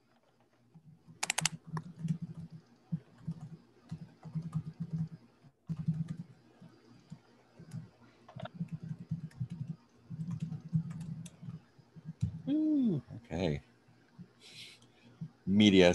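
A man speaks quietly over an online call.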